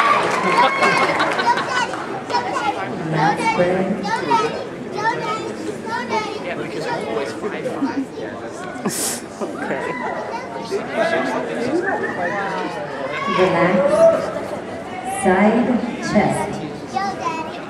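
A crowd in a large hall shouts and cheers loudly.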